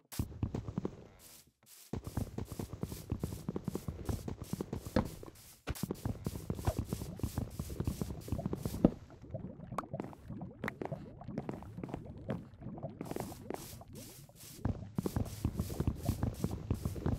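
A pickaxe chops rapidly at wood, in quick, repeated knocks.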